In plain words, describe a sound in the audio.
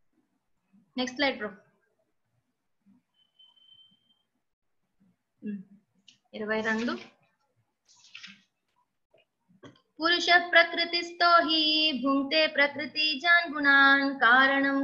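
A woman chants in a sustained, melodic voice, heard through an online call.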